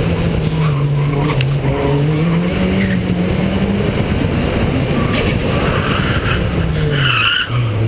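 A car engine hums loudly, its pitch rising and falling as the car drives.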